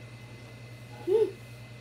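A young girl makes a short vocal sound close by.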